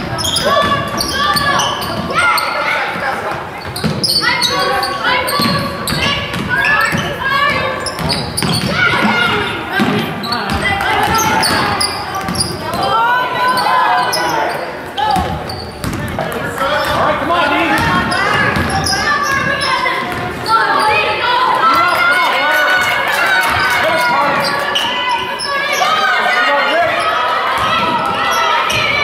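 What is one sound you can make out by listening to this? Spectators talk and call out loudly in a large echoing gym.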